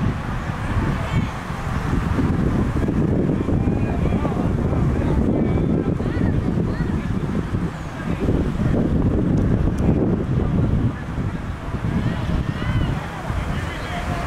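Wind rumbles steadily across an open field outdoors.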